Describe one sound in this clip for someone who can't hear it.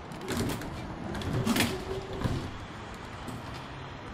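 Tram doors slide shut with a thud.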